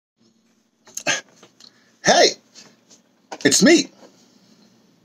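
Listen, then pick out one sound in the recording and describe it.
An older man speaks with animation, close to the microphone.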